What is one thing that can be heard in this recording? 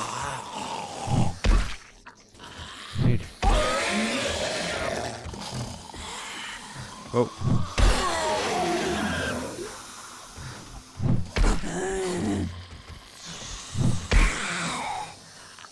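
A zombie groans and snarls.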